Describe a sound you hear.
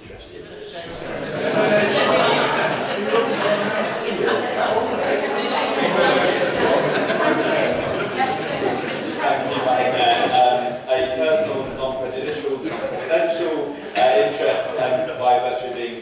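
An elderly man speaks steadily through a microphone in an echoing hall.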